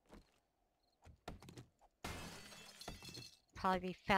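Heavy blows thud against a wooden door.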